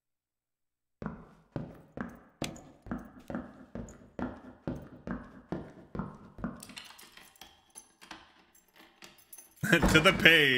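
Footsteps clank on stone.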